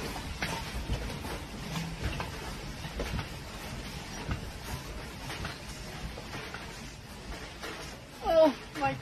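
Stacked boxes and shelves rattle and clatter as the building shakes.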